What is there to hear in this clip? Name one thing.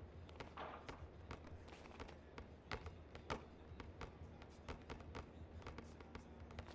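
A basketball bounces rapidly on a hard court.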